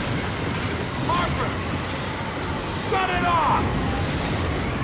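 A man shouts out in alarm.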